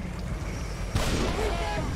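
A heavy gun fires with a booming blast.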